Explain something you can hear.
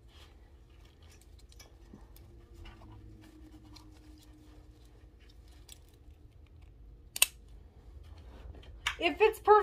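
Helmet straps rustle and click as they are adjusted.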